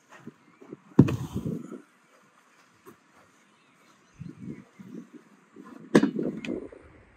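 A metal bowl is set down on a wooden table.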